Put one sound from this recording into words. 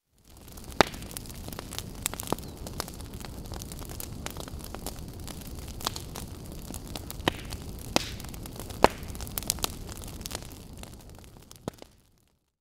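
Burning wood crackles and pops.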